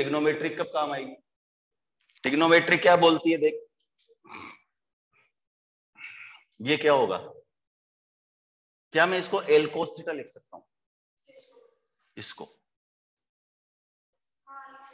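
A middle-aged man speaks calmly through a close microphone, in short bursts with pauses.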